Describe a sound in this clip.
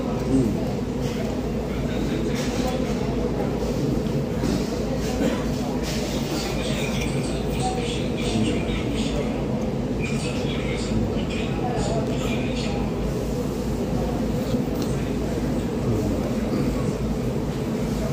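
A man chews and smacks his lips.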